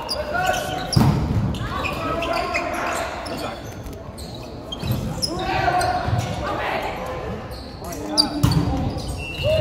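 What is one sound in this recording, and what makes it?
A volleyball is struck with loud slaps.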